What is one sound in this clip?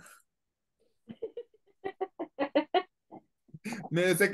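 A young woman laughs over an online call.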